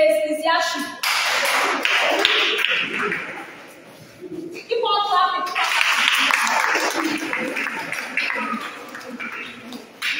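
A group of children cheers and claps.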